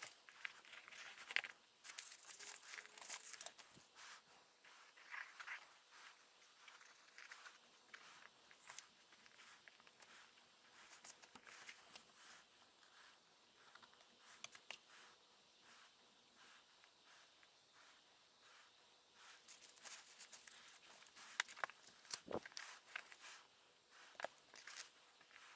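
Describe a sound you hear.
Paper rustles and crinkles as hands handle pages.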